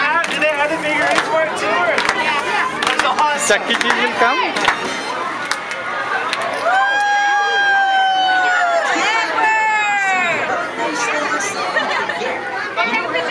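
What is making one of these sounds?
A crowd of children chatter and shout nearby.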